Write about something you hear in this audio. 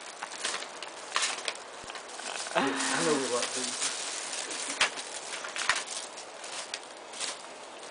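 Plastic wrapping crinkles and rustles.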